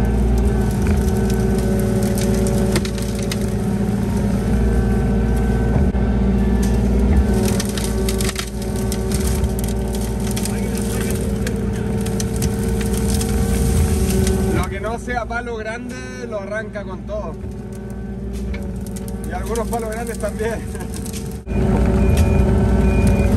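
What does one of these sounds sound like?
A digger's diesel engine rumbles steadily up close.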